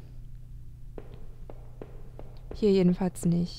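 Footsteps tap on a hard floor at a steady walking pace.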